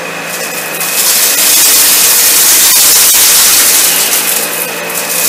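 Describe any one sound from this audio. Grit and debris rattle loudly as a vacuum cleaner sucks them up from a carpet.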